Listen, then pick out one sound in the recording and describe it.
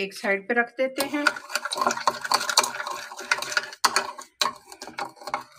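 A metal spoon scrapes and clinks against a ceramic bowl while stirring.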